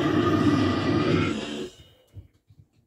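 A young man growls and screams harshly into a microphone up close.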